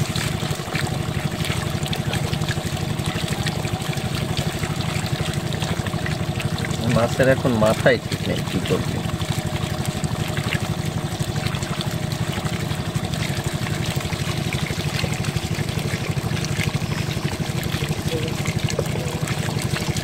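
Water trickles steadily down a narrow channel into a basket.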